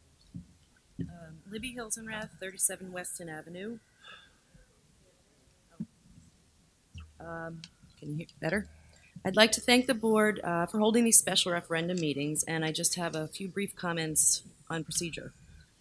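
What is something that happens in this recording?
A woman reads out calmly through a microphone.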